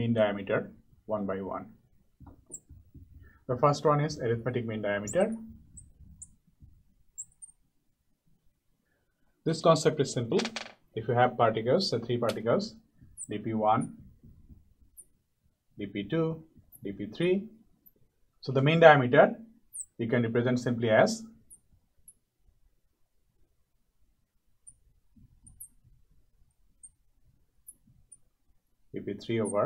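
A man speaks calmly and clearly, as if explaining, close to a microphone, with pauses.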